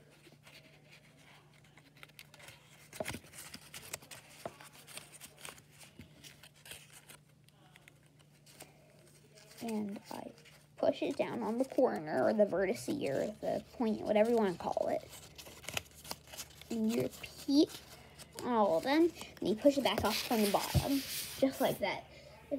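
Paper crinkles and rustles as it is folded by hand, close by.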